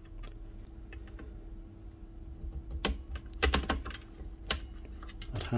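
Pliers click and clink against metal parts of a power saw.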